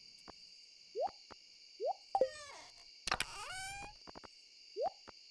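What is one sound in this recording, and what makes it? Short rising blips sound as menu items are picked.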